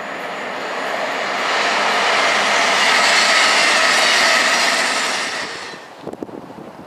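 A passenger train rushes past with a loud rushing roar.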